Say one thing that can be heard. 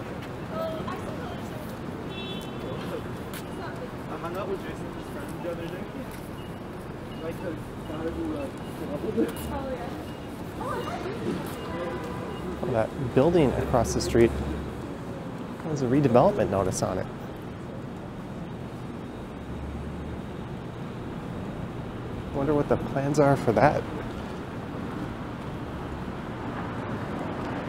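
City traffic hums steadily nearby.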